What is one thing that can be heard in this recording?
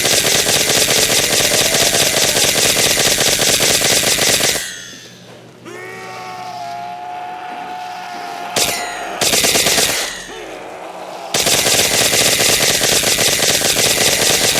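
A ray gun fires a loud, steady crackling blast.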